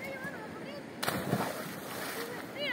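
A boy jumps into a river with a splash.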